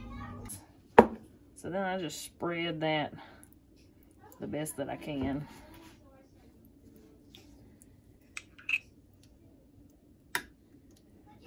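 A metal spoon clinks and scrapes against a glass dish.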